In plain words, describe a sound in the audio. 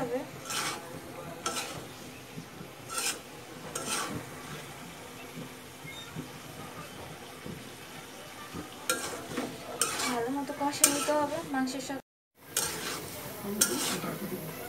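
A spatula scrapes and clanks against a metal pot while stirring food.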